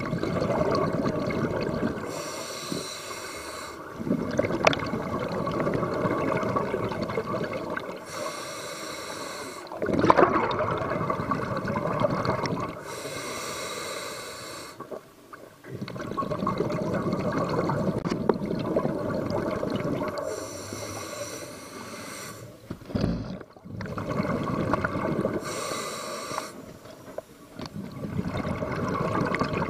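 A diver breathes underwater through a regulator, with bubbles rushing out every few seconds.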